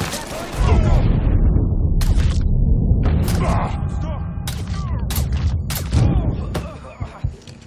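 Gunshots fire in quick bursts, loud and close.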